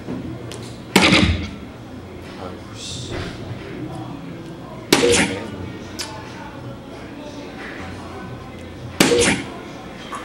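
Darts thud sharply into a board, one at a time.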